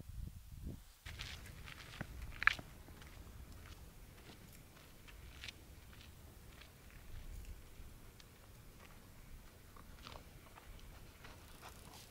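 Footsteps crunch on a dirt path and fade into the distance.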